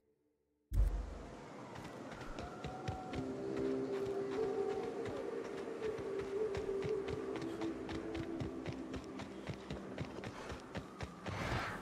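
Footsteps crunch steadily through grass.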